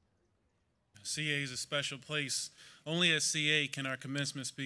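A young man speaks calmly into a microphone over a loudspeaker.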